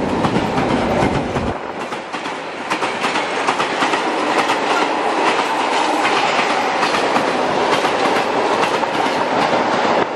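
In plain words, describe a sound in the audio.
A freight train rolls past close by, its wheels clattering and squealing on the rails.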